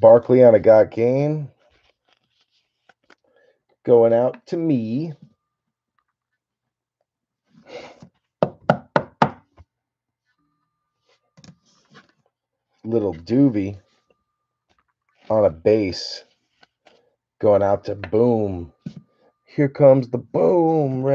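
Plastic card sleeves crinkle and rustle as hands handle them.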